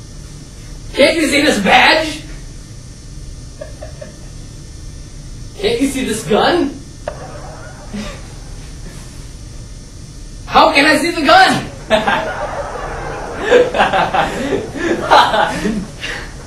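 A young man answers the teenage boy in short phrases.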